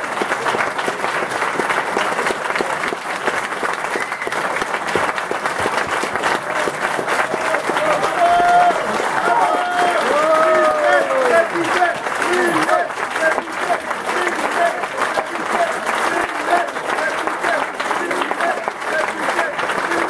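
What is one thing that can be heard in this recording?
A crowd applauds loudly in a room.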